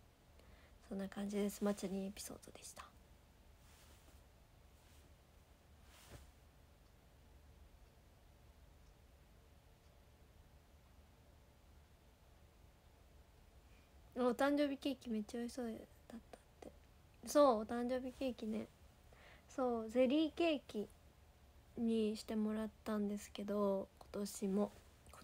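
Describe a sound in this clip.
A young woman speaks close to a microphone, with pauses.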